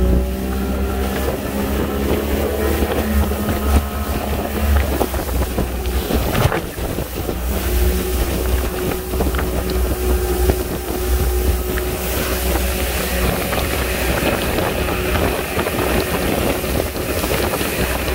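Water rushes and splashes against a moving boat's hull.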